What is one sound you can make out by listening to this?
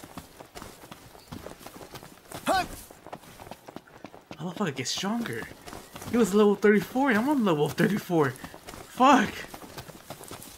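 Footsteps run and rustle through tall grass.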